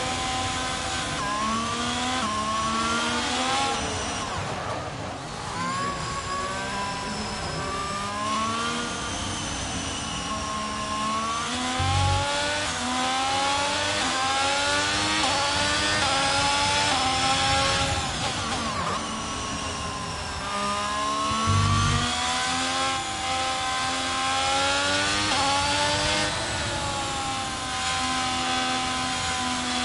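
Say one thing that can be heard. A racing car engine screams, its pitch rising and falling as the gears shift.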